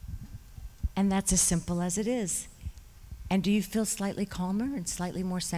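A woman speaks animatedly into a microphone.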